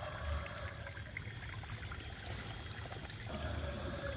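A small fish splashes at the surface of the water as it is reeled in.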